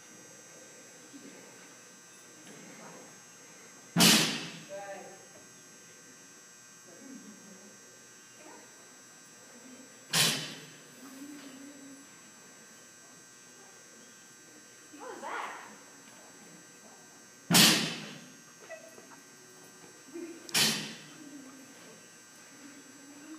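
A woman calls out commands from a distance.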